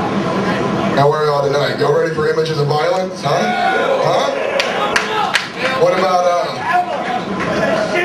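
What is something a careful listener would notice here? A man shouts into a microphone through loudspeakers.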